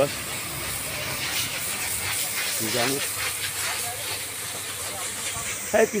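A brush scrubs a wet floor, splashing water.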